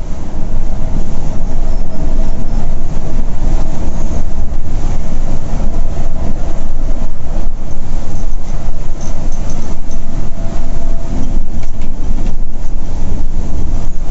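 A diesel coach engine drones while cruising at highway speed, heard from inside the cab.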